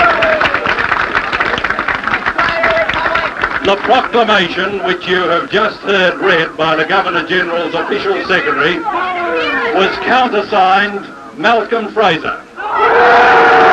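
A middle-aged man speaks firmly into microphones, heard through an old broadcast recording.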